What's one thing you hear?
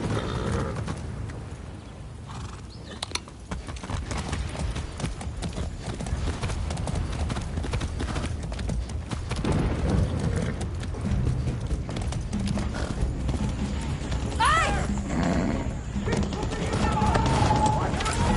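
Hooves thud steadily on the ground.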